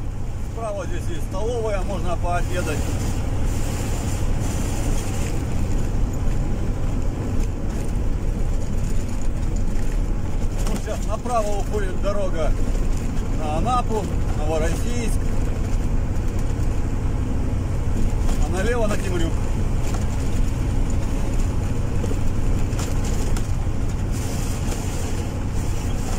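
A vehicle engine hums steadily with road rumble from inside the cab.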